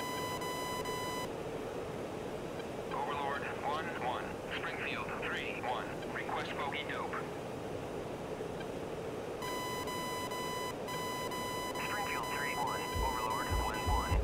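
A fighter jet's engine roars steadily, heard from inside the cockpit.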